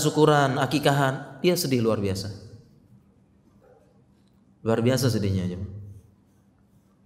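A man speaks calmly and with animation into a close microphone, in bursts with pauses.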